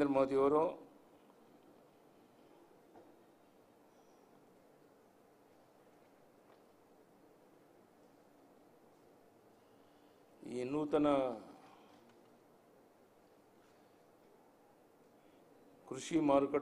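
An elderly man speaks into microphones in short bursts with long pauses.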